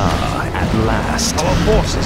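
Magic blasts crackle and boom in a fantasy battle.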